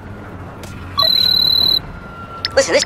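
A phone rings briefly with a high electronic tone.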